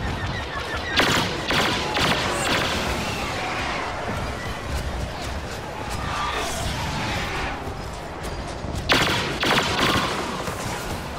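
Laser blasters fire in quick bursts.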